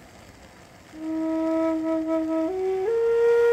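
A wooden flute plays steady notes that step upward.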